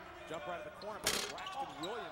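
A basketball player falls and thuds onto the wooden floor.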